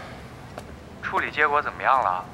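A young man speaks into a phone in a calm, questioning voice.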